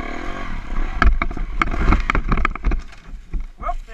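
A dirt bike crashes onto rocks with loud thuds.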